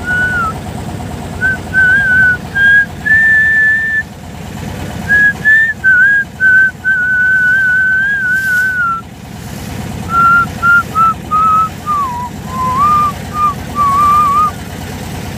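Water laps gently against a moving boat.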